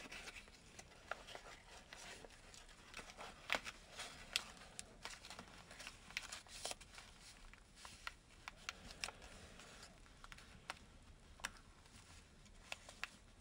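Paper crinkles and rustles as it is folded by hand, close up.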